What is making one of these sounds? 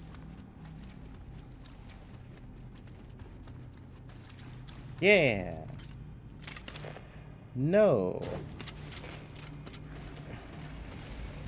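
Footsteps tread on stone with a light clink of armour.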